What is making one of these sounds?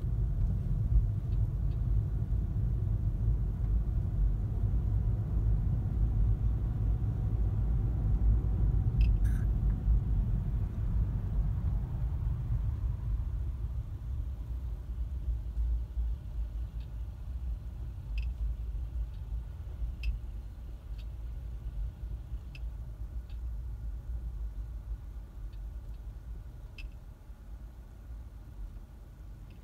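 A car engine rumbles low and steady, growing quieter as the car slows.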